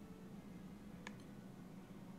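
A short electronic menu chime blips.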